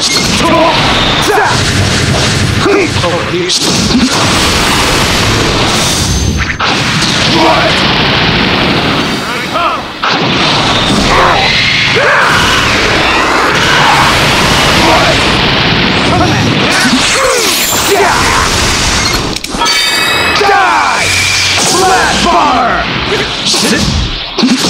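Game fight sounds of punches, blasts and energy beams crash steadily throughout.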